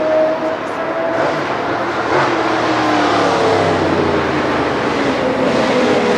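A race car engine revs loudly as it passes close by.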